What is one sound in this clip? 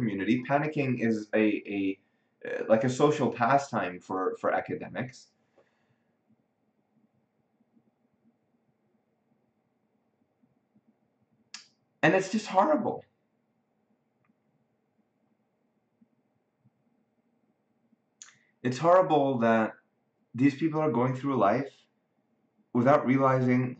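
A man speaks calmly and close by, with pauses between phrases.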